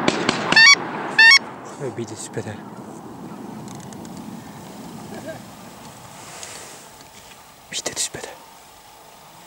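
A flock of birds calls loudly overhead.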